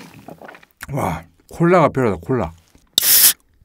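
A young man speaks up close with animation.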